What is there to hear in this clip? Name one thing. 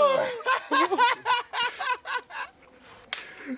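A young man laughs close by.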